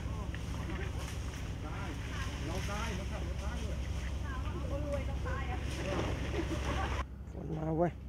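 Leaves rustle as a man climbs in a tree.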